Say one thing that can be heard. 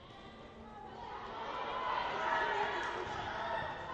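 A crowd cheers and shouts, growing louder.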